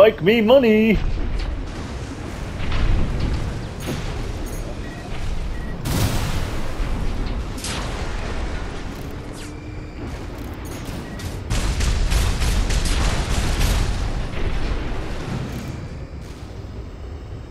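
Rocket thrusters roar steadily.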